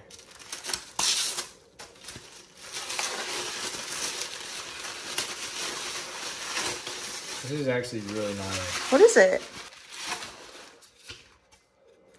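Tissue paper rustles and crinkles as it is unwrapped.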